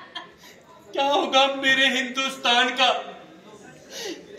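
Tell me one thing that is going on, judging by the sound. A man speaks with emotion into a microphone.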